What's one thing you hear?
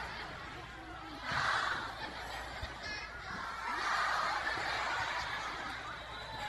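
A young woman speaks with animation through a microphone and loudspeakers.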